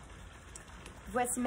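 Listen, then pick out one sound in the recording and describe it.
A young woman begins to speak close by.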